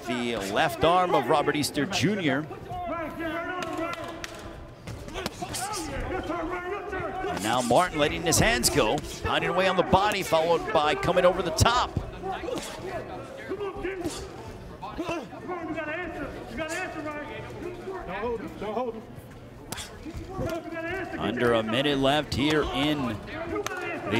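Boxing gloves thud against bodies in quick blows.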